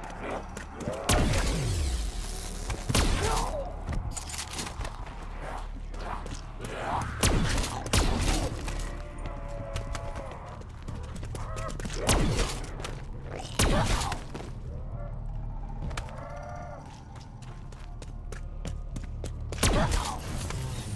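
Gunfire bursts out in loud, sharp volleys.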